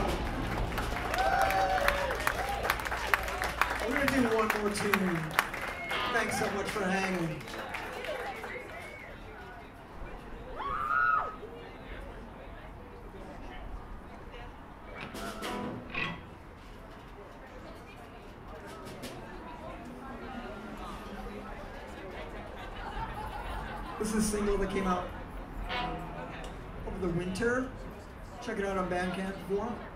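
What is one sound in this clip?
Electric guitars strum loudly.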